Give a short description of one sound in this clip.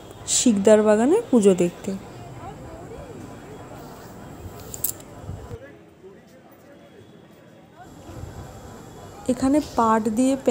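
A crowd of people chatter and murmur nearby.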